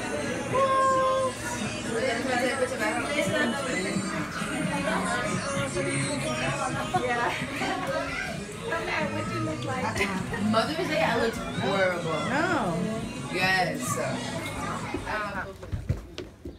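Several people chatter and laugh close by.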